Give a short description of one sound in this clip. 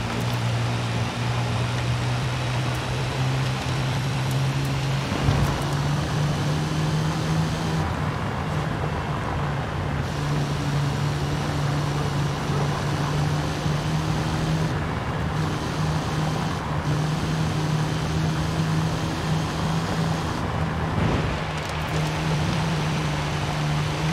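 A vehicle engine hums steadily and shifts gear as it drives.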